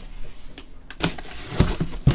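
Hands grab and move a cardboard box with a rustle.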